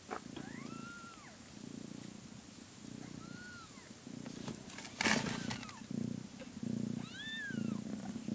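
A cat purrs loudly up close.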